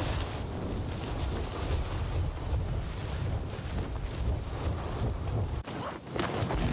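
Wind rushes loudly past during a fast fall through the air.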